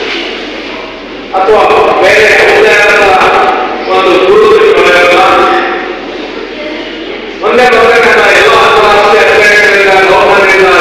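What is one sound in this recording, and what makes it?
A man speaks formally into a microphone over a loudspeaker in an echoing hall.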